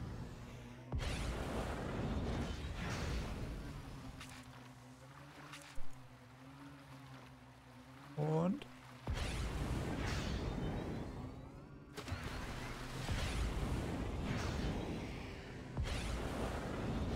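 A spacecraft boosts with a rushing whoosh.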